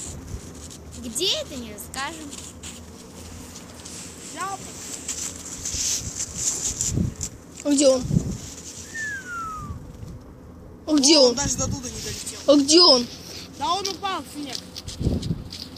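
A child talks excitedly close by.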